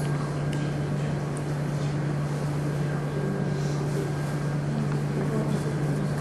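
An elderly man speaks quietly and calmly.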